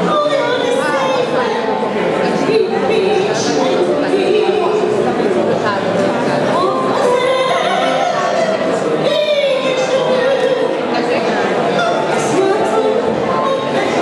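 A woman sings into a microphone with a strong, sustained voice.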